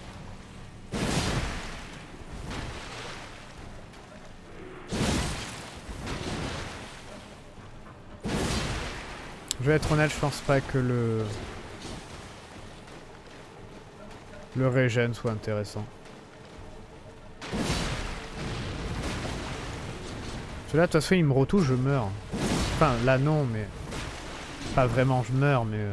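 Metal blades swing and strike with heavy thuds.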